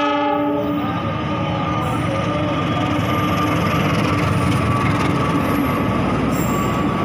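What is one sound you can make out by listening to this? Train wheels clatter on the rails.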